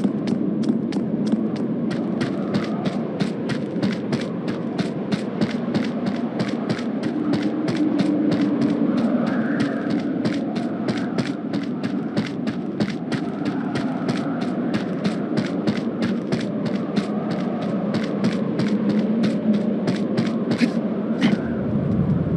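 Quick footsteps run steadily over hard ground.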